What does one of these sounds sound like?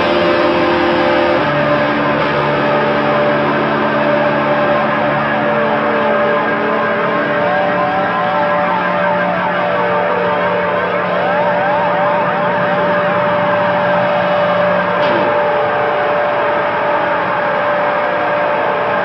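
Small motorcycle engines buzz and rev loudly, rising and falling in pitch.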